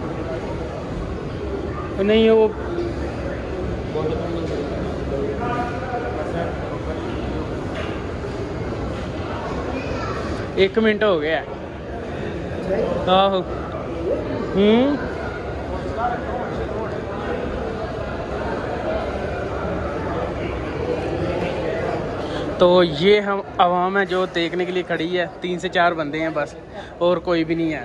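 A crowd murmurs steadily in a large echoing hall.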